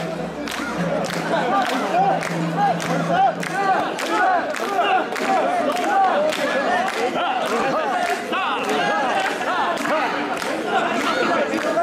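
A large crowd of men chants loudly in a steady rhythm.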